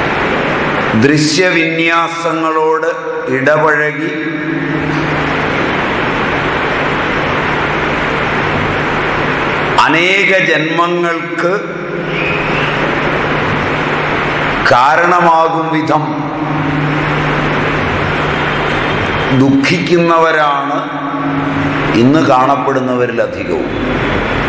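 A man speaks calmly in short bursts close by.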